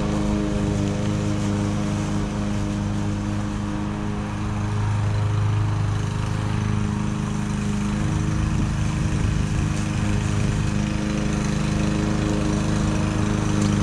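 A string trimmer engine whines steadily close by.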